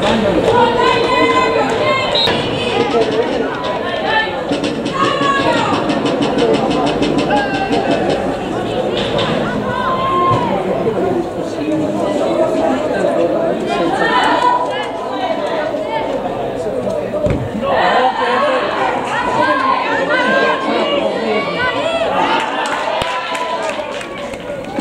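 Young women shout to one another across an open pitch.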